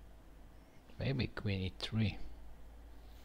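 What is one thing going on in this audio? A middle-aged man speaks briefly and calmly, close to a microphone.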